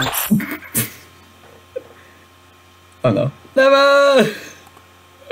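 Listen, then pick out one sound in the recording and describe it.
A young man laughs close to a microphone.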